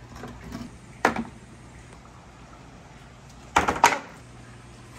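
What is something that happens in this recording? A plastic board clatters onto concrete blocks.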